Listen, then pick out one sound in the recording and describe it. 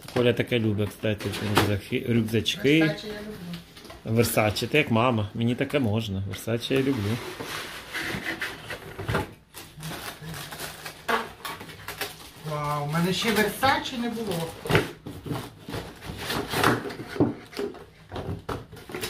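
Paper and plastic packaging rustle and crinkle.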